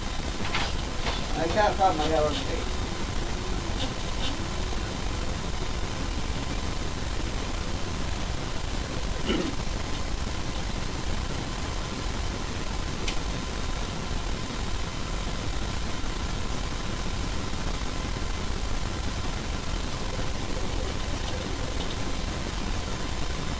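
A small electric motor hums steadily.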